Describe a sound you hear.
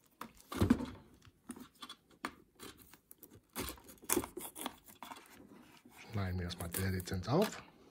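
Cardboard scrapes and taps inside a box.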